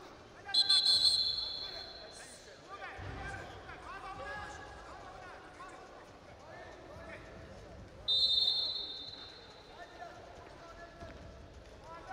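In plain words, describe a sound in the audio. A crowd in a large hall shouts and cheers.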